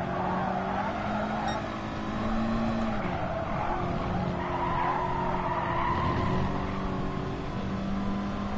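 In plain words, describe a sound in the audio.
A racing car engine roars steadily at high revs, its pitch shifting with gear changes.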